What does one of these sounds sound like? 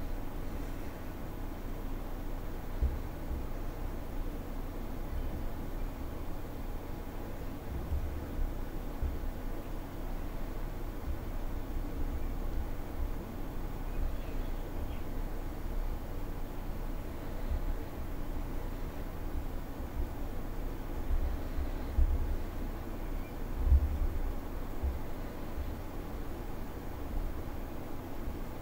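A jet engine roars steadily from inside a cockpit.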